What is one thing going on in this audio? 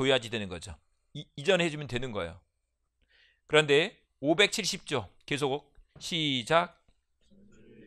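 A man lectures loudly and with animation into a microphone.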